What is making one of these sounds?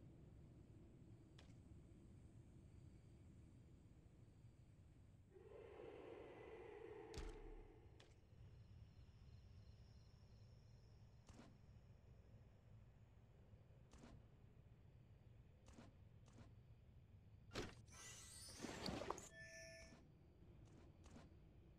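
Game menu buttons click softly.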